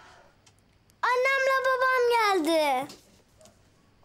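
A young boy calls out excitedly.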